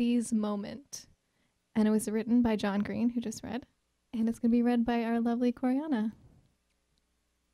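A woman sings into a microphone.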